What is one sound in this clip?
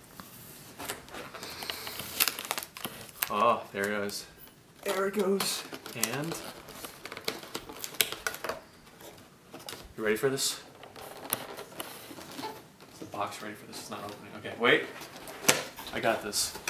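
Fingernails scratch and pick at a cardboard box.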